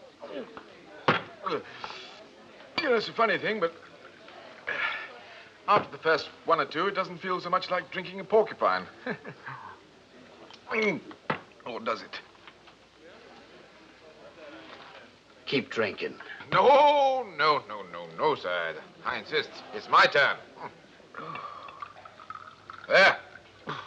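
A man speaks with animation, close by.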